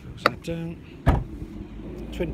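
A car's tailgate slams shut with a heavy thud.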